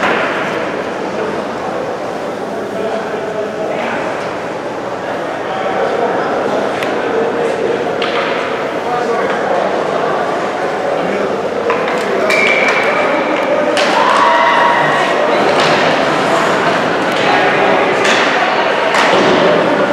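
A crowd of spectators murmurs and cheers in a large echoing rink.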